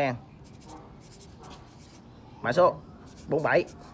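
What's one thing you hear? A marker squeaks as it writes on metal.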